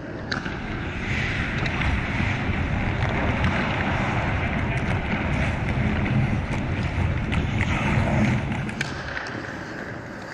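Hockey sticks click against a puck and the ice.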